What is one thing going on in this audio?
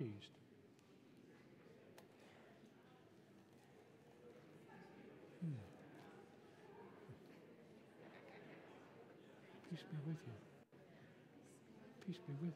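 A group of men and women murmur and greet one another.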